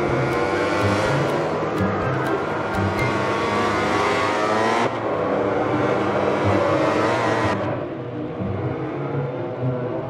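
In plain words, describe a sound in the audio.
Racing motorcycle engines scream at high revs, rising and dropping in pitch as gears change.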